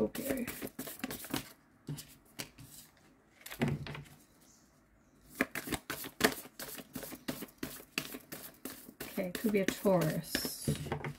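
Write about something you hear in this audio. Cards shuffle and riffle in a person's hands.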